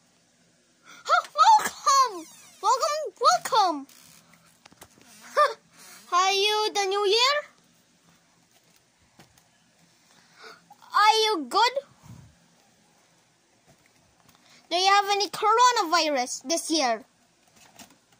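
A child talks with animation close by.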